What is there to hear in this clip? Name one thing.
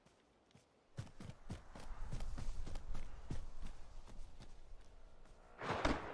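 Footsteps thud quickly over grass and dirt.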